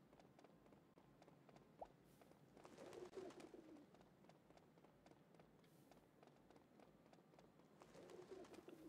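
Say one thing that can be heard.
Quick footsteps tap on pavement.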